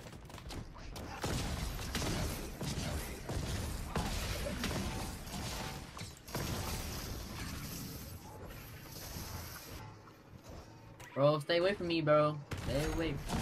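Weapons fire in rapid bursts with booming blasts.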